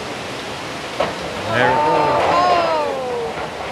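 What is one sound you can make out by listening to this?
A metal roof tears loose and bangs.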